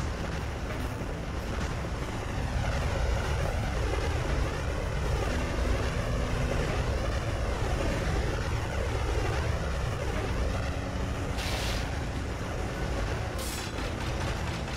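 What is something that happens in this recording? Fire blasts whoosh repeatedly.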